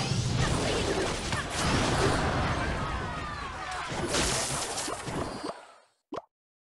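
Video game battle sounds clash and thud in quick succession.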